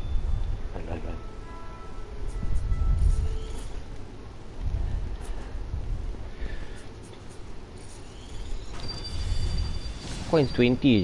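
Soft electronic chimes ring as points tally up.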